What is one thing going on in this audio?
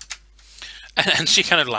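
A man speaks loudly with animation over an online call.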